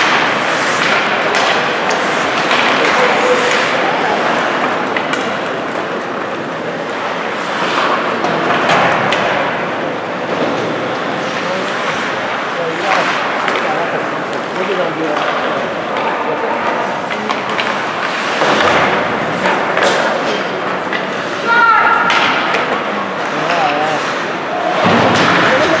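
A crowd of spectators murmurs and chatters.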